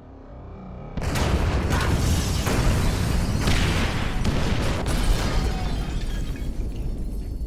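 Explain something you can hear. Loud explosions boom and rumble.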